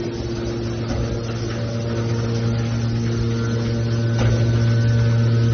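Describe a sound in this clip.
A hydraulic baler hums and whines steadily as it runs.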